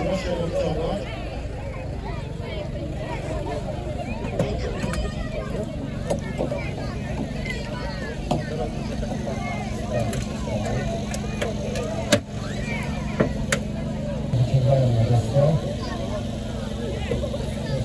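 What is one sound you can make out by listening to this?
A hydraulic rescue tool's pump hums steadily.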